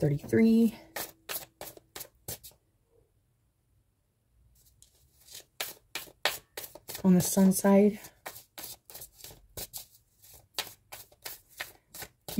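Cards shuffle and riffle with quick soft clicks.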